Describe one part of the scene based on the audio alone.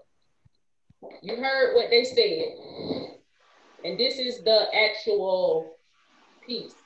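A woman speaks with animation over an online call.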